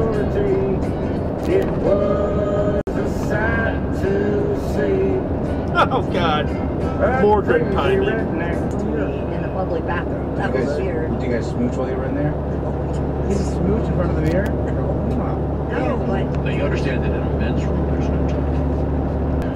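Tyres hum steadily on a highway as a vehicle drives along.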